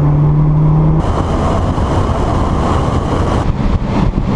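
Wind rushes past a moving car outdoors.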